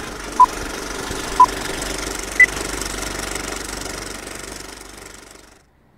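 Old film crackles and hisses steadily, then fades out.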